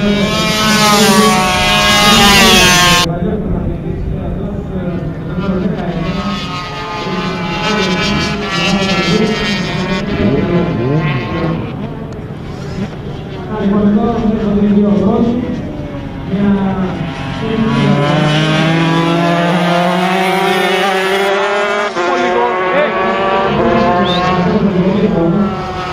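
Motorcycle engines roar at high revs as racing bikes speed past.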